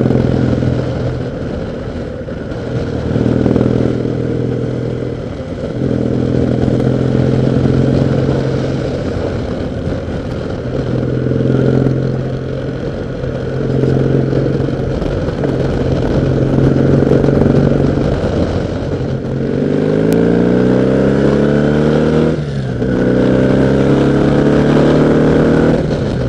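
A motorcycle engine hums steadily, its pitch rising as it speeds up and dropping with a gear change.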